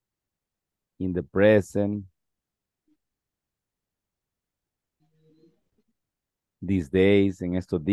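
A young man speaks calmly over an online call, in short phrases with pauses.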